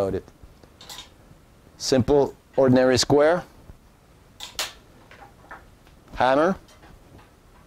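A middle-aged man speaks calmly, close by, in short bursts.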